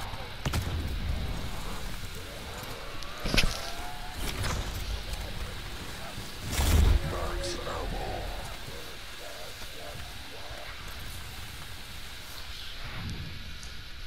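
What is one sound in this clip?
Electric energy crackles and zaps from a weapon.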